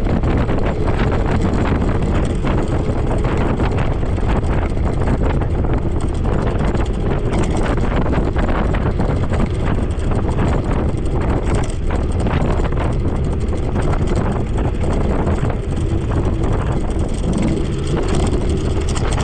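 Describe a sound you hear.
Wind rushes loudly past while riding along a road.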